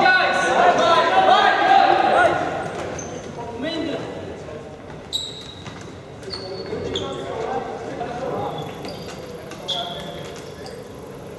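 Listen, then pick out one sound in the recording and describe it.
Sticks clack against a ball and against each other.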